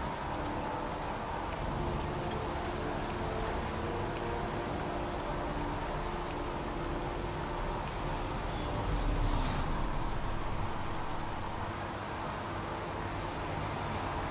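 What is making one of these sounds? Footsteps walk on wet ground.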